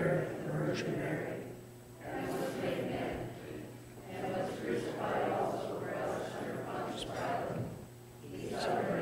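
A man recites steadily in a large echoing hall.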